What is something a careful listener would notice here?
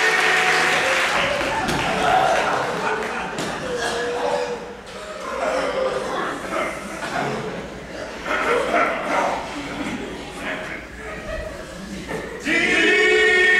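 A group of actors call out and wail together in a large hall.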